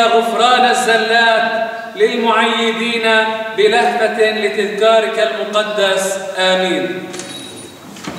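A man chants loudly in a resonant, echoing space.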